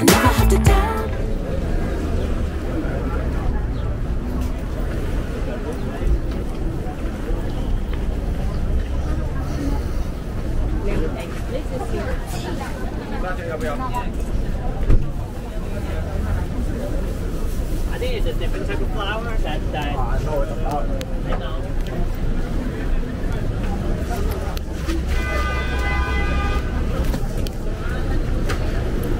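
A busy street crowd murmurs outdoors.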